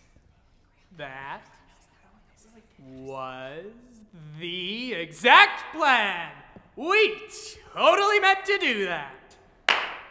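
A young man sings loudly with a rising and falling voice, close by.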